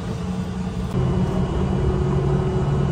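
A bus engine revs up as the bus pulls away.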